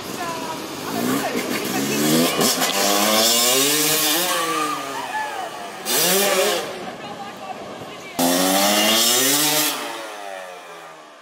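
A motorbike engine revs loudly, rising and falling.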